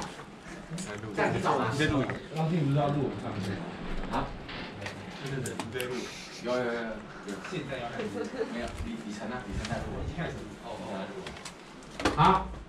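Teenage boys and girls chatter and talk close by in a room.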